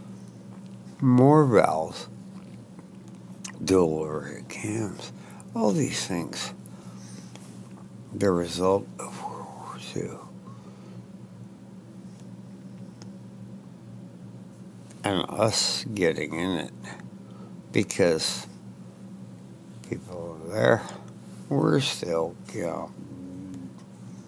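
An elderly man speaks slowly in short bursts, close to a headset microphone.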